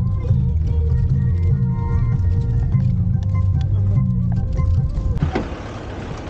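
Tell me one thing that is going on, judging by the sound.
A vehicle engine hums low and steady inside a cabin.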